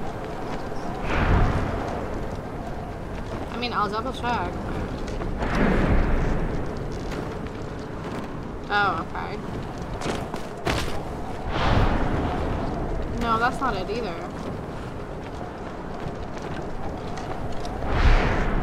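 Wind rushes past in loud, swelling gusts.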